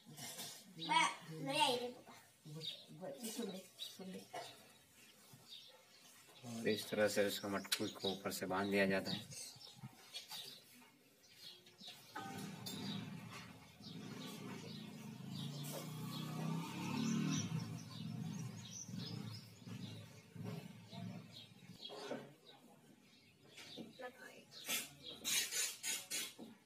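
An elderly woman talks calmly nearby.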